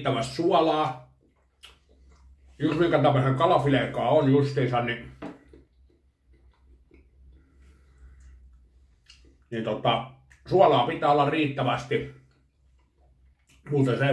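A fork clinks on a plate.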